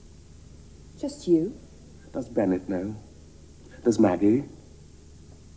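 A young woman speaks calmly and quietly close by.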